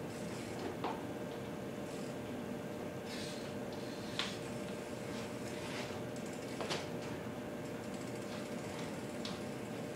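Bike tyres roll and rub across a wooden floor indoors.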